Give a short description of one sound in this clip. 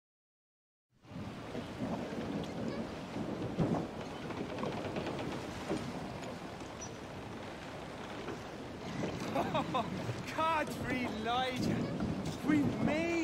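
Wind and waves wash around a ship at sea.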